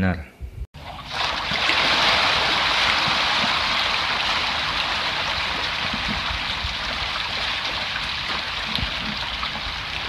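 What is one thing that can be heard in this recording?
Fish thrash and splash noisily in shallow water.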